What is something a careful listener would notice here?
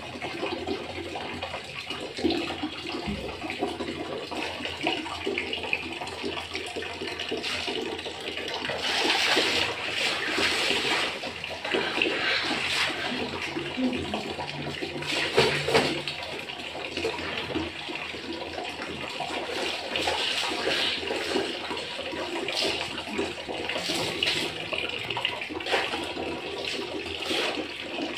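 Water runs from a tap into a bucket.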